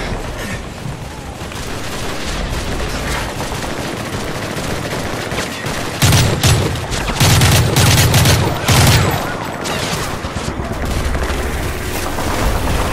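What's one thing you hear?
Distant gunfire crackles steadily.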